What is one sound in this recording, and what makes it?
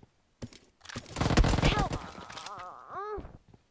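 Gunshots fire in a rapid burst.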